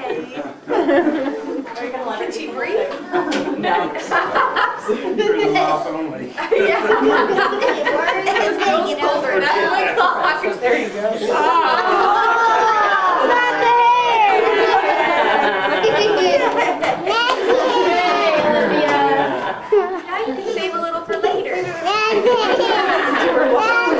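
A young girl laughs and talks excitedly nearby.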